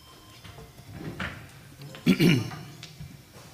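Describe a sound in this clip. A chair scrapes and knocks on the floor.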